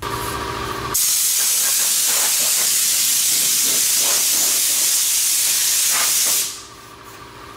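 Compressed air hisses loudly from a hose.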